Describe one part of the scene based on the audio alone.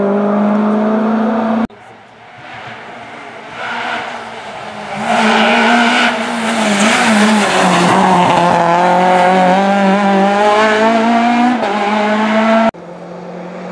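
A rally car engine roars at high revs, rising and falling as the car shifts gears.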